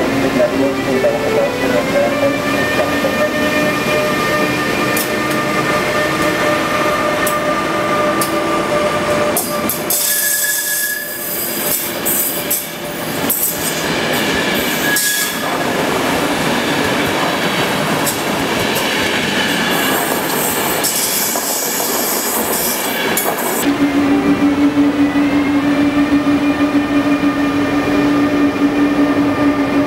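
A train rolls past close by, its wheels rumbling and clattering on the rails.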